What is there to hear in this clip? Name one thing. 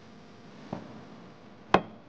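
A glass ashtray knocks down onto a hard table.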